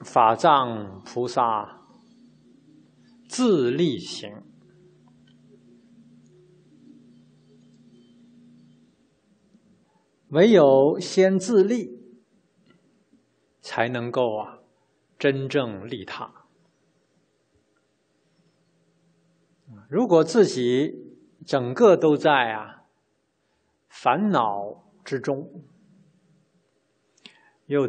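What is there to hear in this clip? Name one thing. A man speaks calmly into a microphone, with pauses between phrases.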